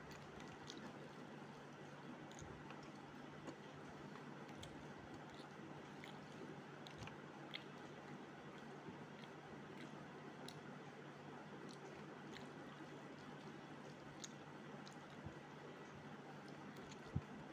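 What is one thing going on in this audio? Fingers mix rice on a metal plate, with soft clicks and scrapes.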